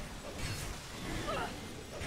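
A magic bolt crackles through the air.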